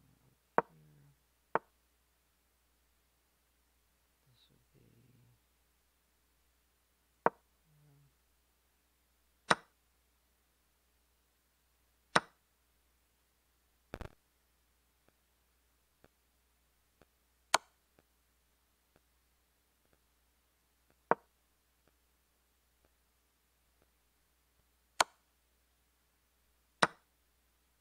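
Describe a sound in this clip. Sharp clicking sounds play from a computer game now and then.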